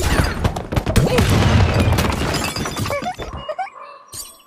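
A loud explosion booms.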